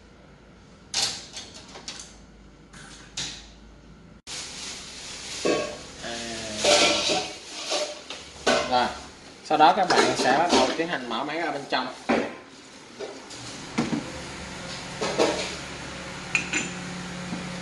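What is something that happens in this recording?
Metal parts of a coffee machine click and knock as they are handled.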